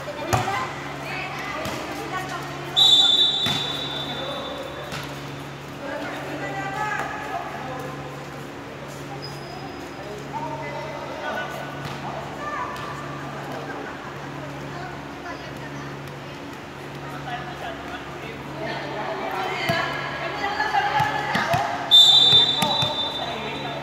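Young women call out and chatter in a large echoing hall.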